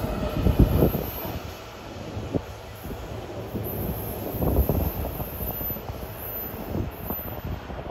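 A distant train rolls away and fades.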